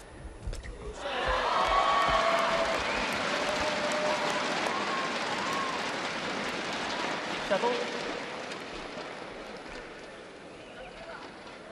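A crowd cheers and applauds loudly, then dies down.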